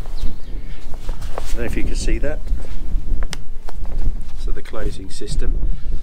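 A fabric bag rustles and crinkles in hands.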